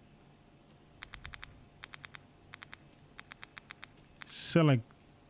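A handheld device beeps in short rapid bursts.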